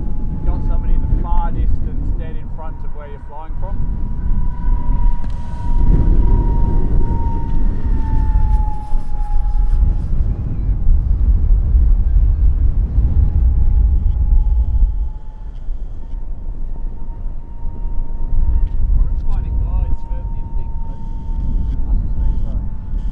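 A jet engine whines with a steady high tone.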